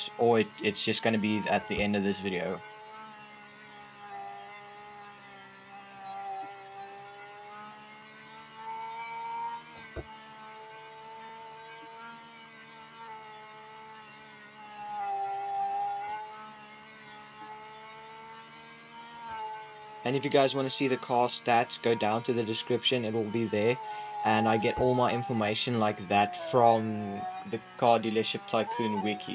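A racing car engine hums steadily at high speed, its pitch wavering slightly.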